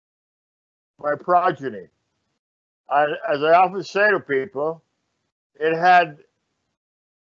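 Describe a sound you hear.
An elderly man speaks calmly in short phrases over an online call.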